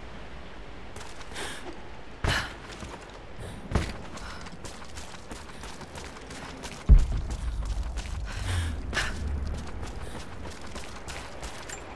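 Footsteps thud on wooden planks and stone.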